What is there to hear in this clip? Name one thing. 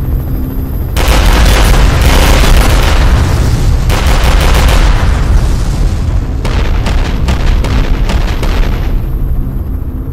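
Explosions boom and crackle in quick succession.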